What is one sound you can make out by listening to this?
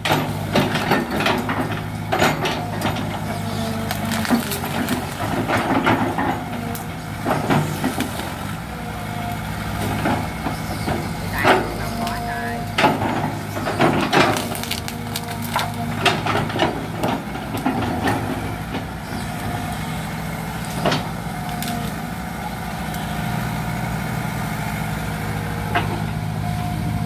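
An excavator bucket scrapes and thuds into dirt and roots.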